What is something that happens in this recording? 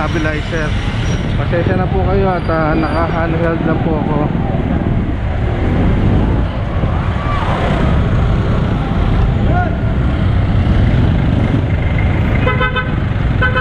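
Vehicle engines rumble steadily in busy street traffic.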